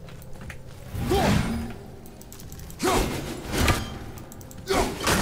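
An axe swishes through the air.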